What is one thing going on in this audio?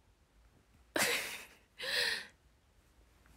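A young girl laughs softly.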